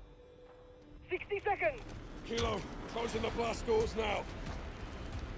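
A man speaks urgently.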